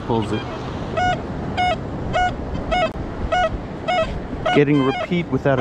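A metal detector beeps in short, evenly spaced pulses.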